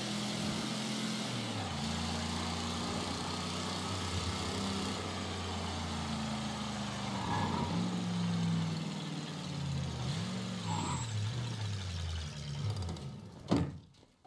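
A car engine revs and shifts gears as it drives.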